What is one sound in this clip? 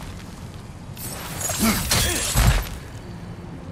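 A flaming axe whooshes and roars with fire.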